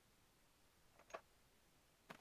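A soft menu click sounds once.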